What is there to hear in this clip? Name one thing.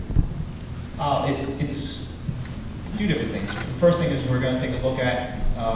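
A man speaks into a microphone in a large echoing room.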